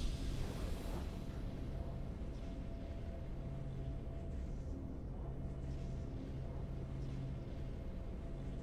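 Low, steady game music hums.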